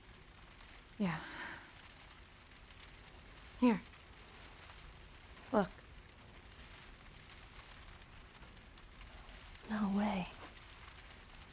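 Another teenage girl answers calmly, close by.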